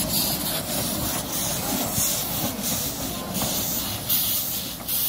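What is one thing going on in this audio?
A small steam locomotive chuffs steadily as it pulls away.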